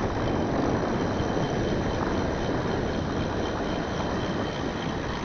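Bicycle tyres roll over an asphalt road.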